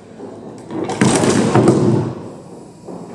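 A wooden chair collapses and clatters onto a hard floor in an echoing hall.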